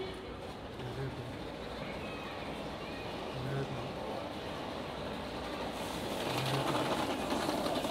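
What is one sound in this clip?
A middle-aged man talks close to the microphone.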